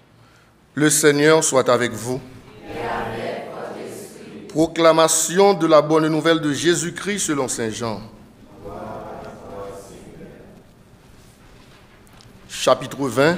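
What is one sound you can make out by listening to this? A man speaks with animation through a microphone in an echoing room.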